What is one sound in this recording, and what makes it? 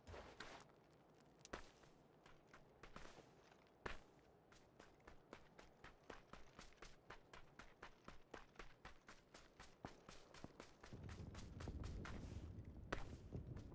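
Quick footsteps run over grass and gravel.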